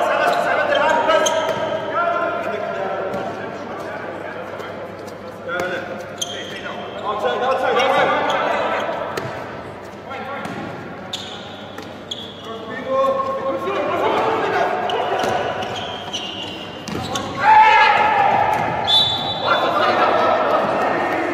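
Sneakers squeak on a hard indoor court.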